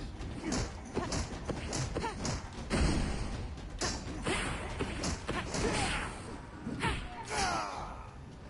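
Swords clash and slash in quick, sharp strikes.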